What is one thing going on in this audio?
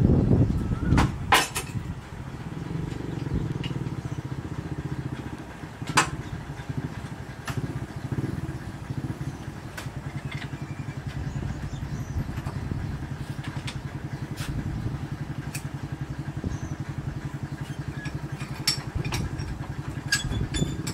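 Metal parts knock and clank sharply.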